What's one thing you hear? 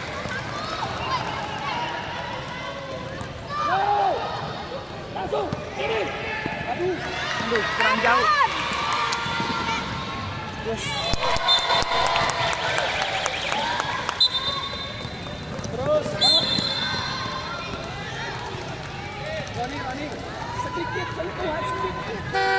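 Players and onlookers chatter in a large echoing hall.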